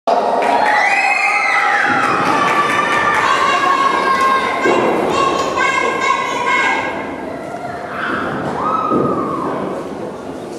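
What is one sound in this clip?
Music plays through a loudspeaker in a large echoing hall.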